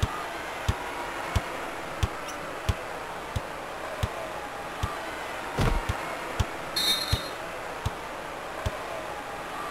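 A basketball bounces on a hardwood court in a steady rhythm.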